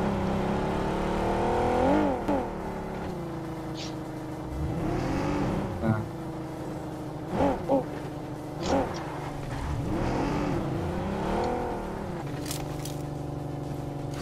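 A car engine hums and revs up and down as the car drives over bumpy ground.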